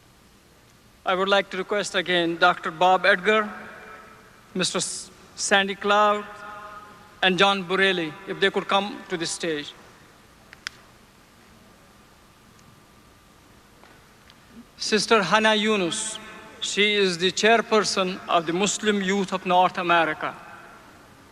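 A man speaks calmly through a microphone and loudspeaker, in pauses.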